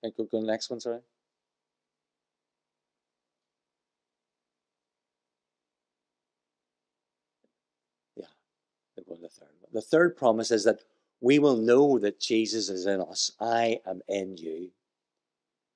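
A middle-aged man speaks calmly through a microphone, pausing at length.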